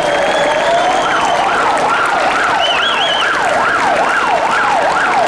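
A police van siren switches to a fast yelp.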